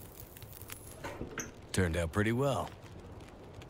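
A fire whooshes alight in a stove.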